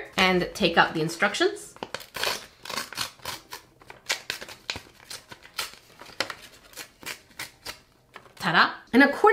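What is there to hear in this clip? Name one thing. Paper crinkles and rustles as it is unfolded.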